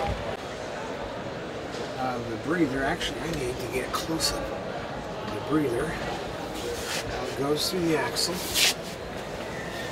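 A nozzle sprays a fine mist with a soft, steady hiss.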